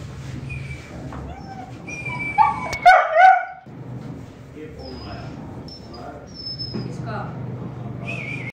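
A puppy whines and yelps close by.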